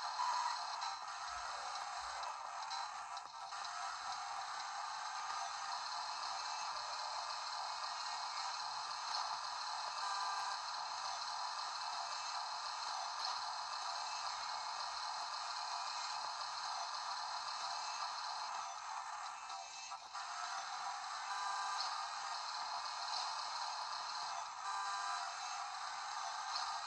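Tinny game music and sound effects play from a small handheld speaker.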